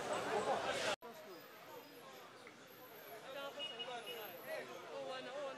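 A crowd of men and women talk among themselves at a distance, outdoors.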